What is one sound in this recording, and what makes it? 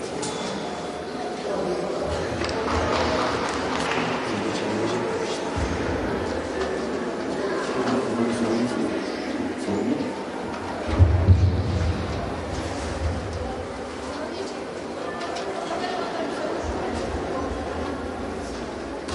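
A crowd of young players chatters in a large echoing hall.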